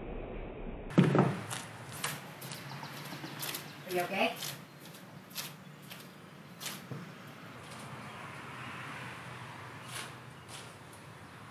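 Footsteps thud on a hollow metal floor.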